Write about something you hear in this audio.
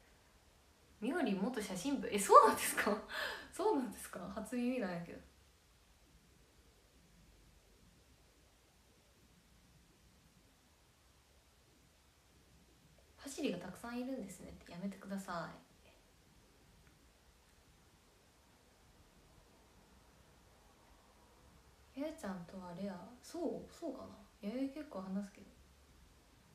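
A young woman speaks close to a microphone, in short bursts with pauses.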